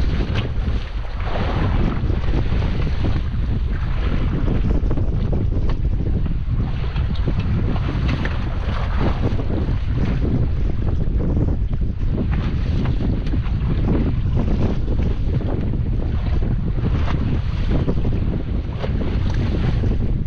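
Strong wind rumbles outdoors.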